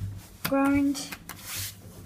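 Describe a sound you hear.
A finger presses an elevator button with a soft click.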